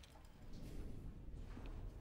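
Metal dishes clatter on a table.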